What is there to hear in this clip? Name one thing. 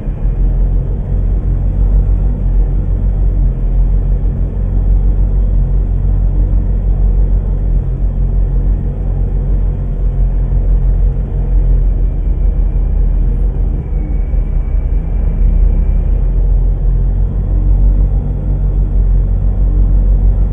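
A truck engine idles with a deep, steady rumble.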